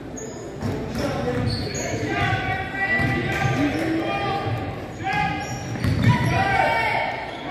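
Voices of young players call out in a large echoing gym.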